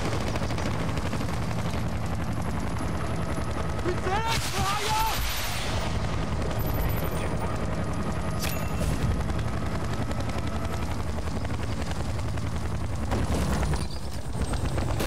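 A helicopter's rotor thuds steadily.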